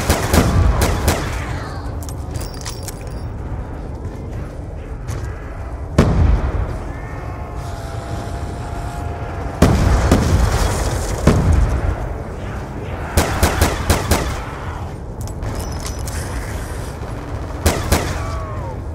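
A pistol fires sharp gunshots in bursts.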